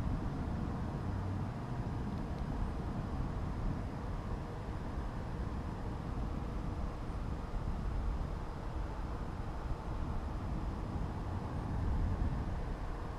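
Wind rushes and rumbles steadily over the microphone.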